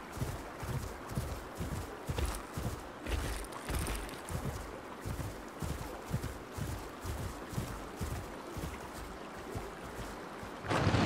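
Heavy footsteps thud steadily on grass.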